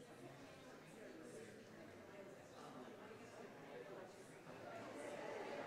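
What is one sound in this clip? Several men and women chat among themselves at a distance, in a large echoing hall.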